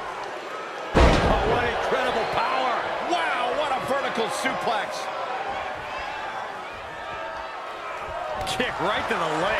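A body slams hard onto a wrestling ring mat with a loud thud.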